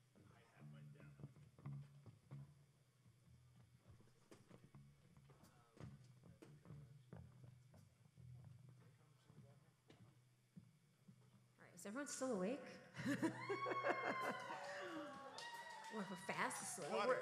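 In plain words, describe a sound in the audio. A band plays softly with a bass line and light drum taps.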